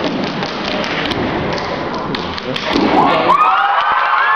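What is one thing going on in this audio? An audience cheers and shouts loudly in a large hall.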